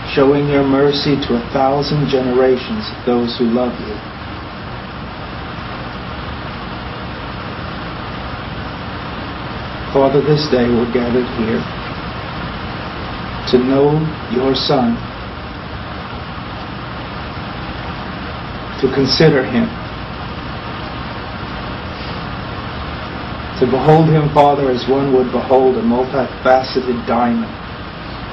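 A middle-aged man speaks slowly and quietly into a close microphone, with long pauses.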